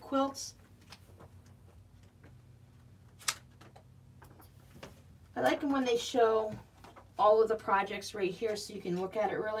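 Magazine pages rustle and flip.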